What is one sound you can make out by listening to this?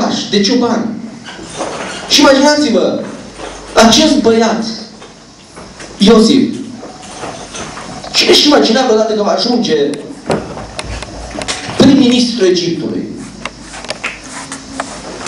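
A young man speaks with animation into a microphone, heard through loudspeakers in an echoing room.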